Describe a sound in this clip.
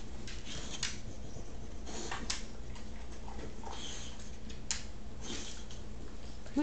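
A dog sniffs loudly at the floor.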